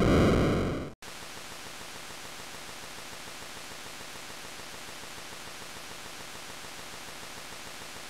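A faint electronic buzz hums steadily.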